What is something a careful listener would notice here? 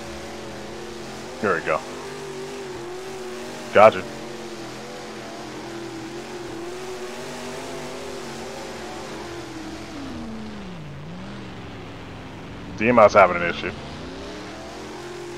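A race car engine drones steadily, dropping low as the car slows and then rising again.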